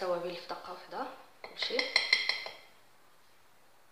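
A whisk scrapes and clinks inside a metal bowl.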